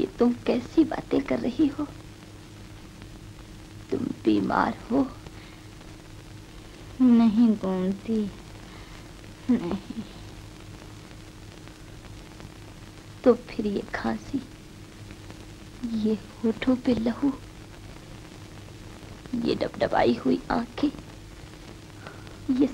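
A young woman speaks softly and gently, with pauses.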